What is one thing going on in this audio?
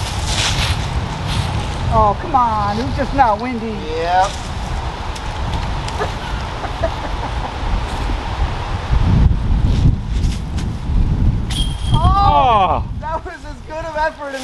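Wind rumbles outdoors throughout.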